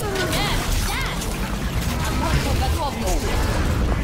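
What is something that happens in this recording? A loud explosion bursts in a video game.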